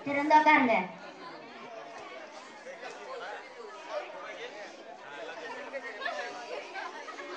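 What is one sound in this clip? Children talk more quietly nearby.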